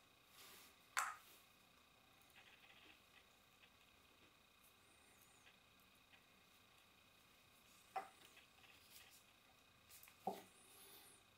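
A glass jar clinks softly as it is handled.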